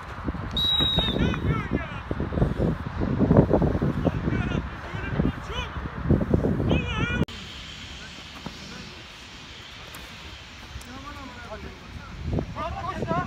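Men shout to each other outdoors across a sports pitch.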